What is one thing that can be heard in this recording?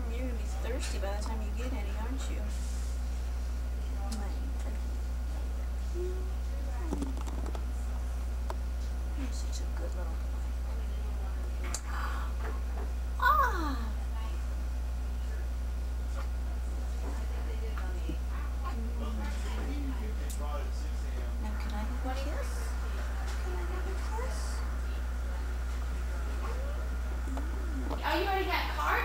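A woman speaks softly and tenderly nearby.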